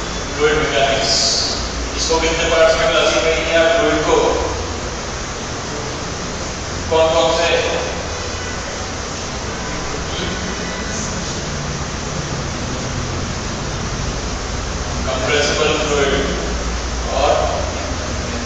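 A young man speaks calmly through a headset microphone, in short bursts.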